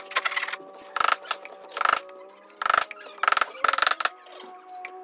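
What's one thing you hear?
A hammer taps a wooden joint together.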